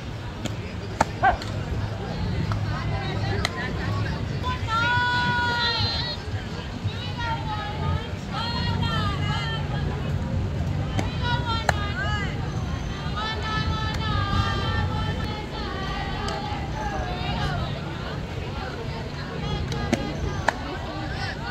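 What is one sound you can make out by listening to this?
A softball smacks into a catcher's mitt.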